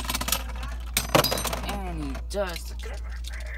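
A spinning top clatters into a plastic bowl.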